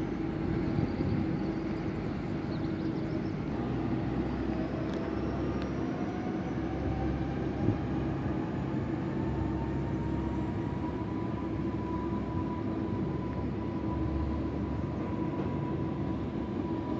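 An electric train rumbles and hums as it pulls away along the rails.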